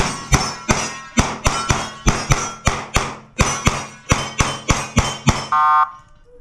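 Rapid rifle shots ring out in quick succession, sharp and loud.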